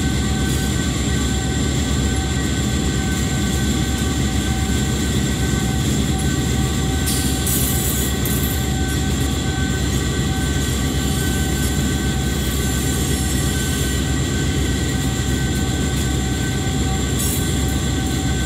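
A diesel locomotive engine rumbles steadily at speed.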